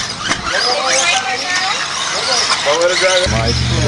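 A small electric motor of a toy car whines as the car speeds over dirt.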